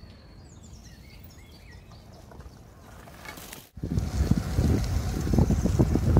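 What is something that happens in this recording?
Bicycle tyres roll over a dirt path.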